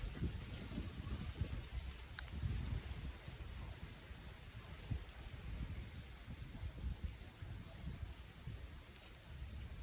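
Wind gusts outdoors, buffeting and rumbling low.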